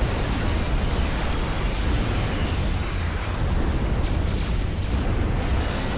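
Gunfire and explosions crackle during a battle.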